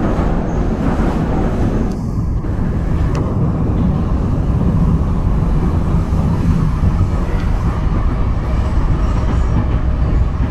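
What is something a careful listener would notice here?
A subway train rumbles loudly along the tracks.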